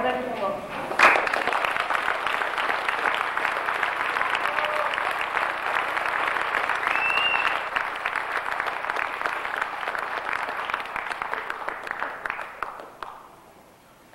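An audience applauds steadily, then fades out.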